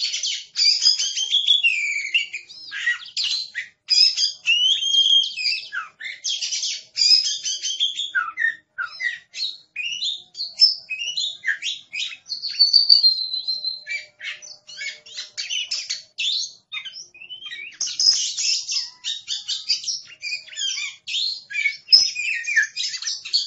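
A songbird sings a loud, varied song of whistles and chirps close by.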